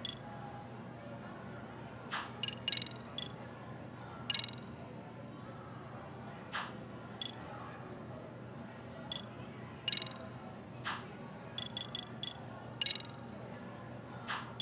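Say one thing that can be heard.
Short electronic menu clicks and chimes sound again and again.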